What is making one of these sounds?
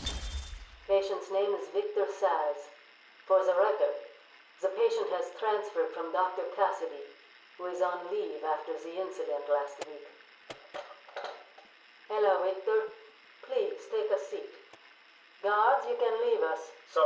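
A man speaks calmly, close to a microphone.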